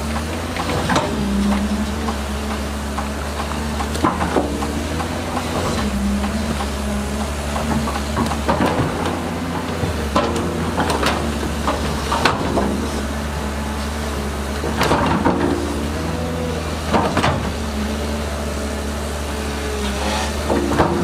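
A bulldozer engine rumbles steadily close by.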